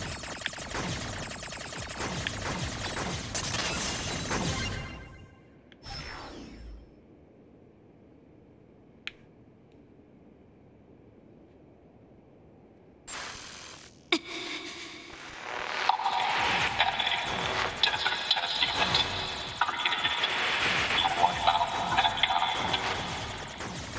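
Rapid laser shots fire and crackle in a video game.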